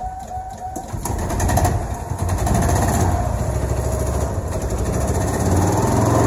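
A small engine runs with a steady rumble.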